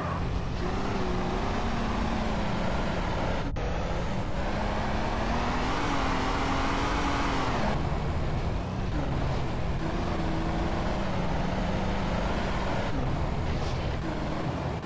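Tyres crunch over a rough gravel track.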